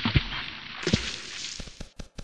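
Water splashes as something plunges in.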